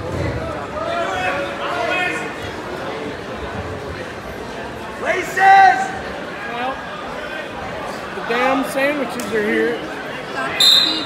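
Men and women in the crowd shout and cheer loudly.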